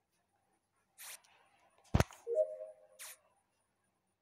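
Short electronic clicks and beeps sound as wires are connected.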